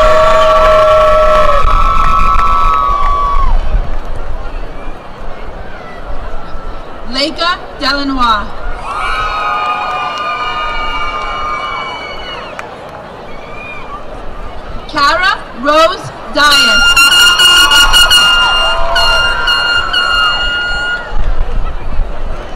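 A large crowd cheers outdoors.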